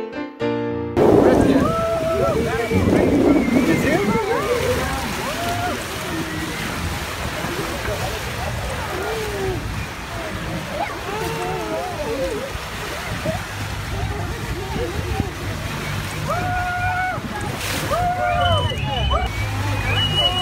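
Sea water rushes past the hull of a moving boat.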